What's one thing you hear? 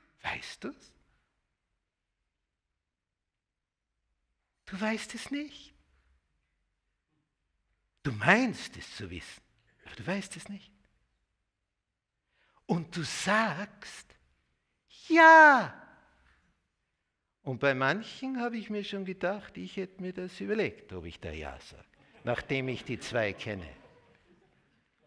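An elderly man speaks with animation into a microphone, in bursts with long pauses.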